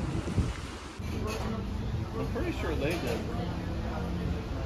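People chatter in the background.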